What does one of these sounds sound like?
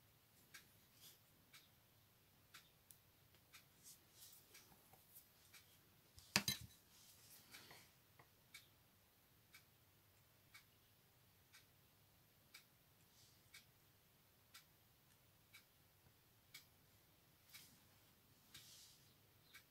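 A small tool taps and scrapes lightly on paper close by.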